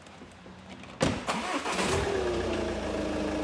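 A car engine starts and idles steadily.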